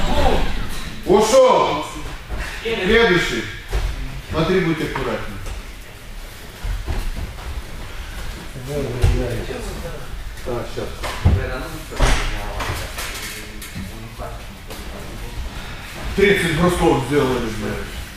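Feet shuffle and thud on a padded mat.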